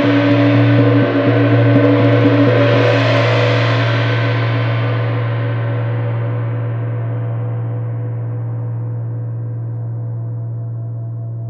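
A large gong hums with a deep, shimmering tone that swells and then slowly fades.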